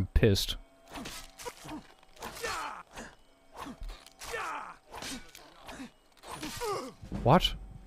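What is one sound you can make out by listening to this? A sword strikes a giant crab's shell.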